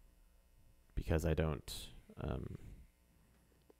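A man speaks briefly into a close microphone.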